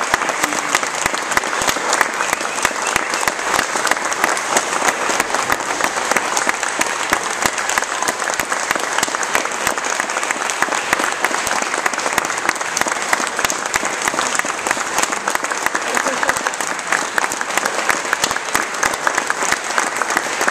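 An audience applauds loudly and steadily in a large hall.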